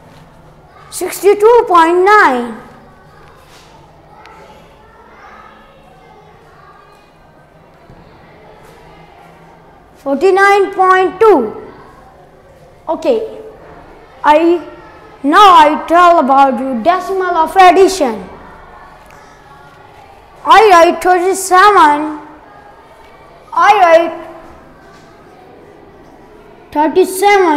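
A boy speaks clearly and slowly, as if explaining, in a quiet room.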